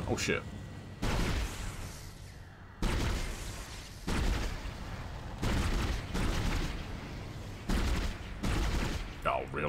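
Energy weapon shots fire in sharp bursts.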